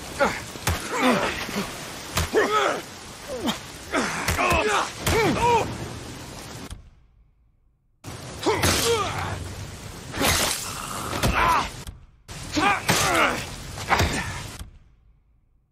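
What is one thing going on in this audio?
Men shout and grunt while fighting close by.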